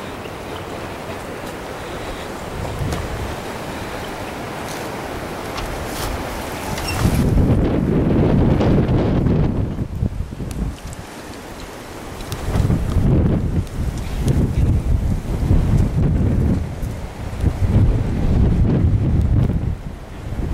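Footsteps crunch on dry grass.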